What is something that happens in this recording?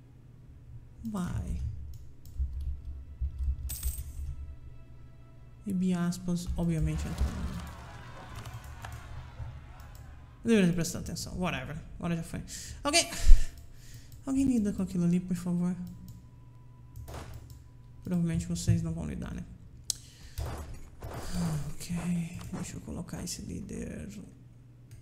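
A man talks calmly and with animation into a close microphone.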